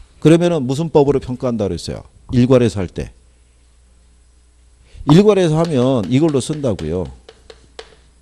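A middle-aged man lectures with animation through a microphone.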